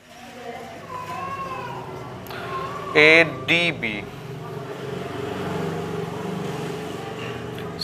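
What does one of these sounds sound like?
A man speaks in an explaining tone, close by.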